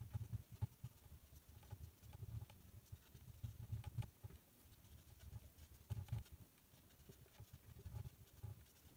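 A marker squeaks and scratches across a whiteboard.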